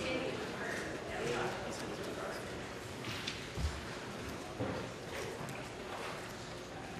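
A man speaks steadily through a microphone in a large, echoing hall.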